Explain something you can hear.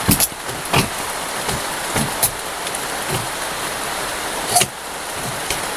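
Wooden poles knock and clatter.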